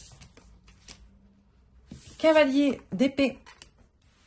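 A playing card slides and taps softly onto a table.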